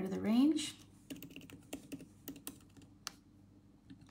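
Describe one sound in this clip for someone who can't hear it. Keys on a laptop keyboard click as someone types.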